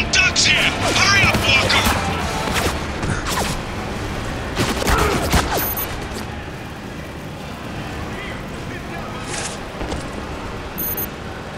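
Footsteps thud as a soldier runs and walks.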